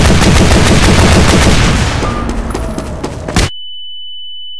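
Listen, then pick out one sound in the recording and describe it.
A loud explosion roars and rumbles, then fades into crackling flames.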